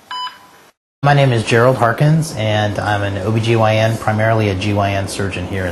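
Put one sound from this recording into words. A man speaks calmly and clearly to a close microphone.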